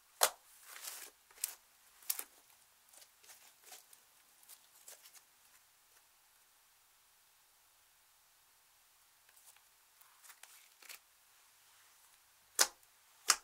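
Fingers squish and press soft, sticky slime, with crackling pops.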